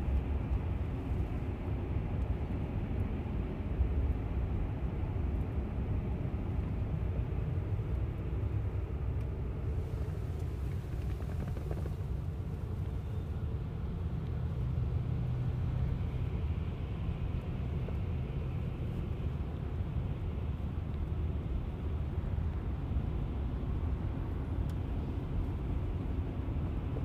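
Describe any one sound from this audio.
Tyres hum and road noise rumbles steadily inside a moving car.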